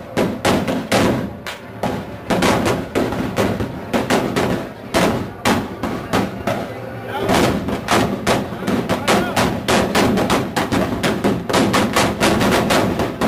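Many guns fire blanks in rapid, echoing bangs outdoors.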